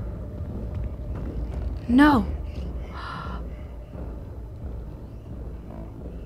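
Heavy footsteps thud slowly across a hard floor.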